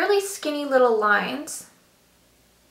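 A young woman speaks close to a microphone in a lively way.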